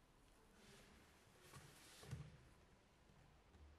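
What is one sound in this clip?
Hands slide and rub on paper.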